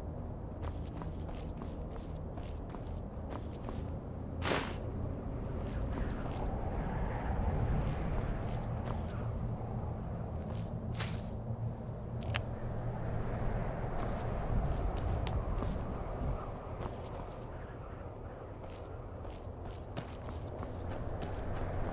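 Footsteps walk across stone paving.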